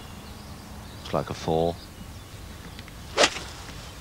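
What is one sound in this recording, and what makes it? A golf club strikes a ball with a short, crisp click.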